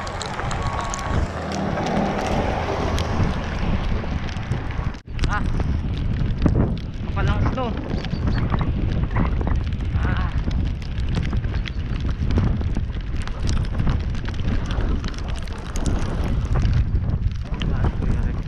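Hail patters and ticks against the road.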